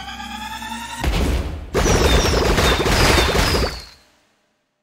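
Game blasts crackle and pop loudly.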